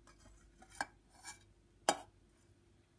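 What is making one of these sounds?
A metal utensil knocks lightly against a plastic tray.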